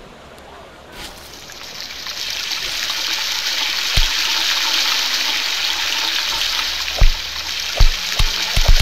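Fries sizzle steadily in hot oil.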